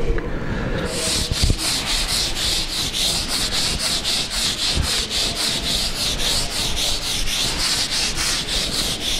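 Chalk taps and scratches quickly on a board.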